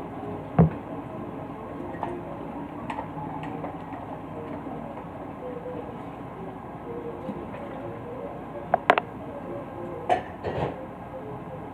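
Dishes and utensils clink and knock on a hard counter.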